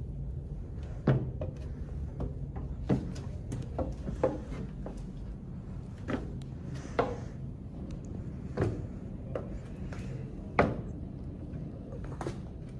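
Footsteps thud on hollow wooden steps.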